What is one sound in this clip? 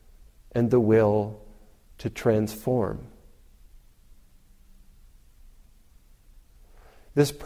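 A man speaks slowly and calmly, close to a microphone.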